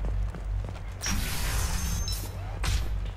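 A sliding door opens with a loud hiss.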